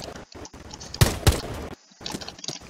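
A rifle fires two quick shots.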